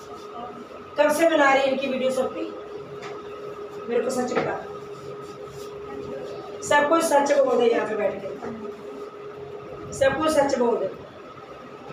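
An elderly woman speaks loudly and angrily, close by.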